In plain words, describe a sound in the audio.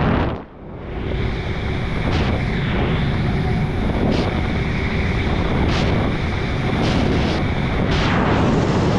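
A flight instrument beeps in steady tones.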